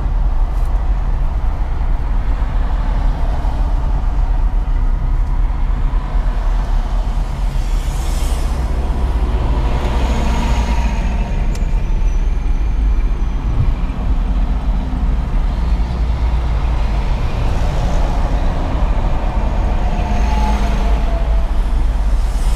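A car's engine and tyres rumble steadily on a highway, heard from inside the car.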